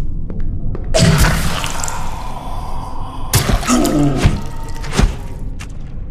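A loud blast bursts and roars, then rumbles away.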